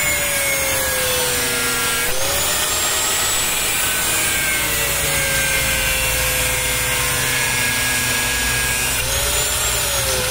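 An angle grinder whines loudly as it grinds metal, its pitch dipping and rising under load.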